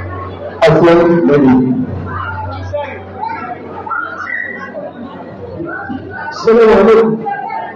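Several men talk in the background.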